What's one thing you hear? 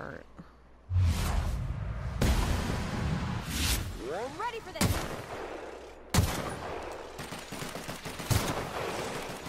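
A rifle fires loud shots, one after another.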